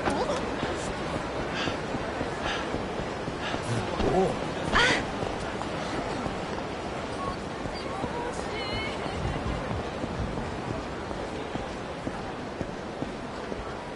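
A crowd murmurs steadily in a busy street.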